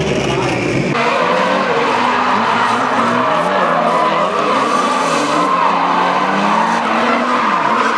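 Race car engines rev up and down in the distance.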